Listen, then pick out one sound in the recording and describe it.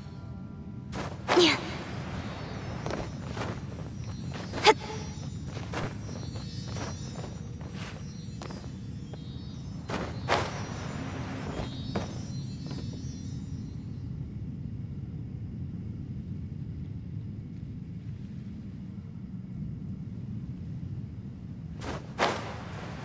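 Short whooshing game sound effects burst out now and then.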